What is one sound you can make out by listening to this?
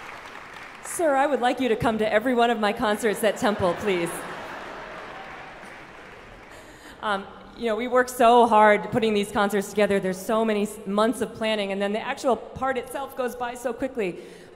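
A young woman speaks calmly into a microphone over loudspeakers in a large hall.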